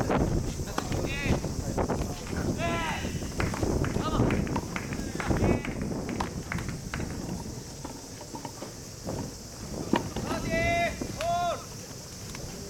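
Players call out to each other from a distance.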